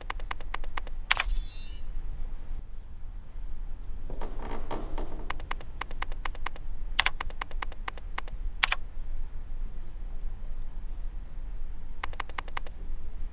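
Rapid soft clicks tick in quick bursts as keys are picked.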